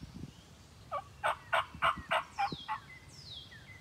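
A wild turkey gobbles loudly in the distance.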